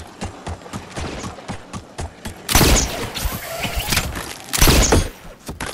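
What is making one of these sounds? A pickaxe strikes stone in quick, repeated blows.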